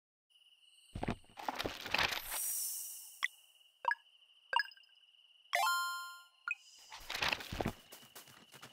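Menu chimes and clicks ring out.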